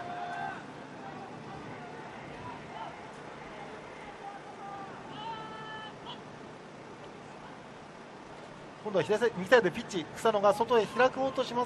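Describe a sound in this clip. A crowd of spectators murmurs and chatters at a distance outdoors.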